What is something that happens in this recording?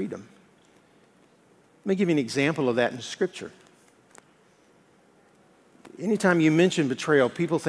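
A middle-aged man speaks with animation through a microphone, pausing between phrases.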